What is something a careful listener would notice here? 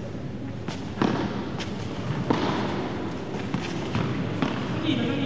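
A padel ball is struck sharply with a paddle in an echoing hall.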